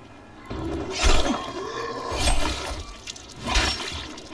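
A blade chops into flesh with wet, heavy thuds.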